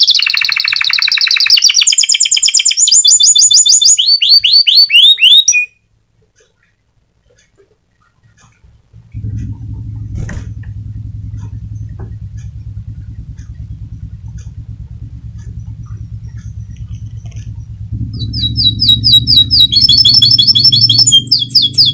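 A small bird sings close by in rapid, repeated trills.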